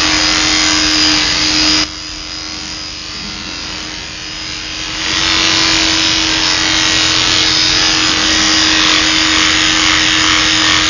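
Electric hair clippers buzz steadily while cutting hair.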